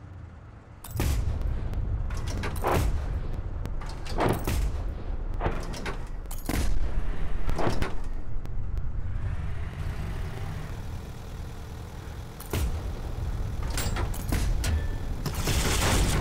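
A cannon fires with sharp booms.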